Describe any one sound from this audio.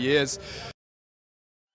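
A man speaks into a microphone close by.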